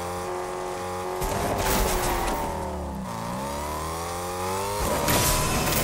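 A car engine hums steadily, dips in pitch and revs back up.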